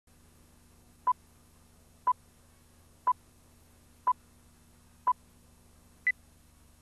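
A short electronic beep sounds once every second, with the last beep higher in pitch.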